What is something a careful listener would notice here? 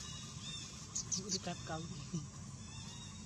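A baby monkey squeaks briefly.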